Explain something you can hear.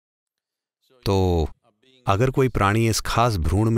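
An elderly man speaks calmly into a microphone, close by.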